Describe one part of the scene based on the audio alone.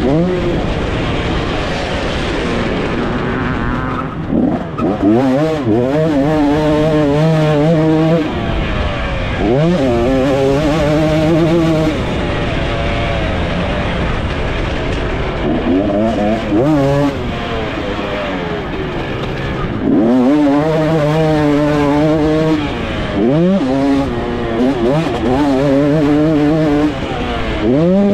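A dirt bike engine revs up and down close by as it races over a rough track.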